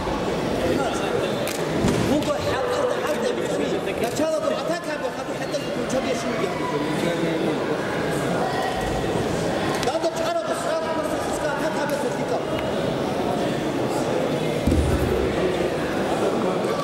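A crowd of men and women chatters throughout a large echoing hall.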